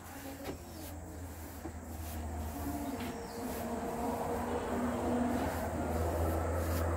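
A paintbrush swishes back and forth over wooden boards.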